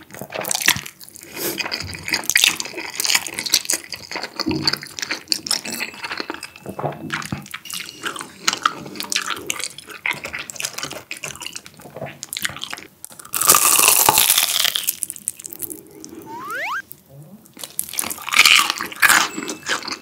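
A young man chews food noisily, close by.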